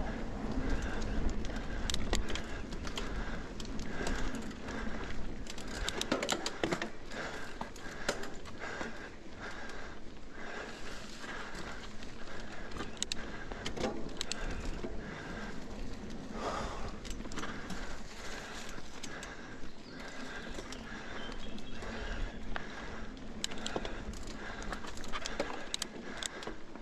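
Bicycle tyres crunch and rumble over a rough dirt trail.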